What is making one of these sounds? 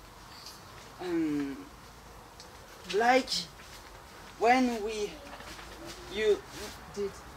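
A teenage boy speaks nearby in short, animated bursts.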